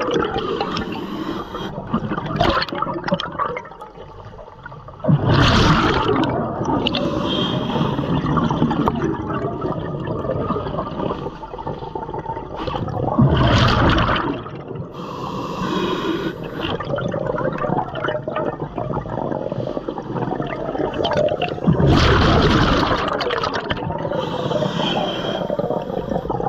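A diver breathes in through a regulator with a hiss.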